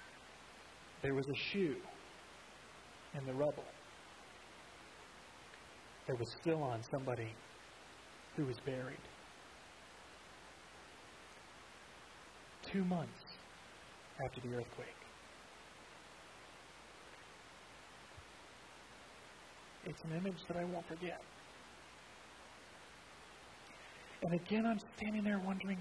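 A man speaks calmly into a headset microphone, in short phrases with long pauses.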